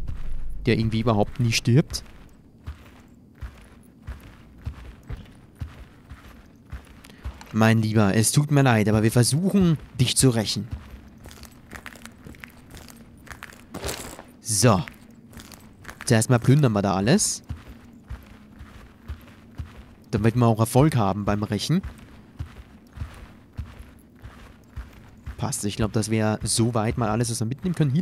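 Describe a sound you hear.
Footsteps tread slowly across a floor indoors.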